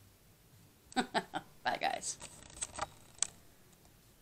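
A young girl laughs and talks.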